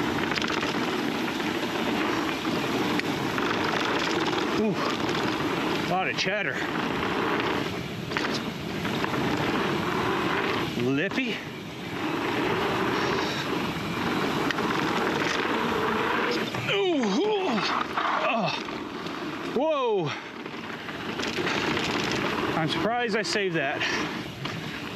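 Wind rushes loudly past a moving bicycle rider.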